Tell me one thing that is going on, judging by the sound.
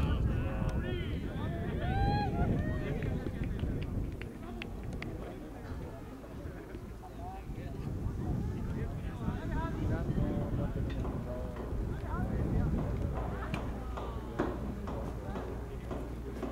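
Men shout and call to each other in the distance outdoors.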